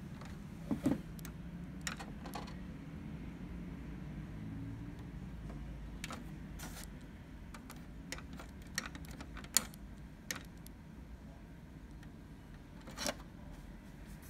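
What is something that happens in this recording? A finger taps and clicks a plastic button up close.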